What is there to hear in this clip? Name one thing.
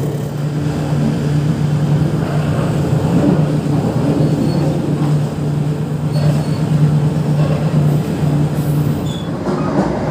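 A diesel locomotive engine rumbles steadily close by.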